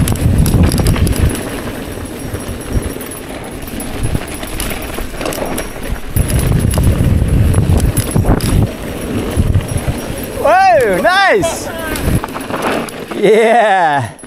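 Bike tyres crunch and rattle over a gravel road.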